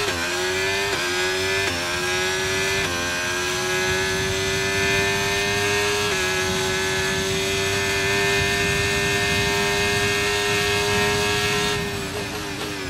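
A racing car engine screams at high revs, climbing and shifting up through the gears.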